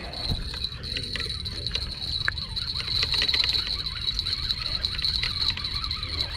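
A spinning reel is cranked, its gears whirring and ticking.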